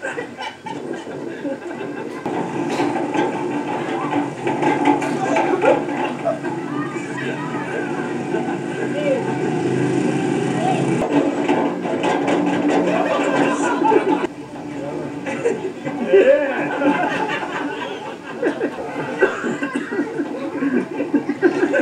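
Men and children chatter and laugh nearby outdoors.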